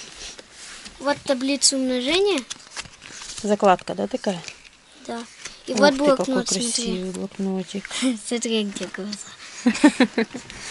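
A young girl talks close by, with animation.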